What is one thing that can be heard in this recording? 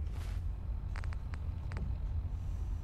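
A device's dial clicks a few times.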